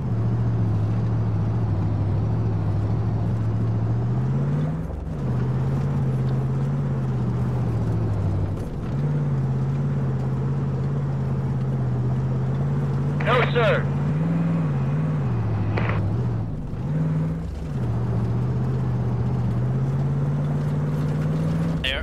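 A truck engine drones steadily and rises and falls in pitch as the gears shift.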